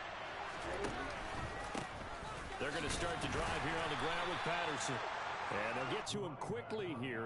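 A large stadium crowd roars.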